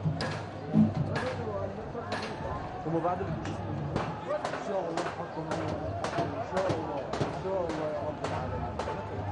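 A crowd chants loudly in rhythm outdoors.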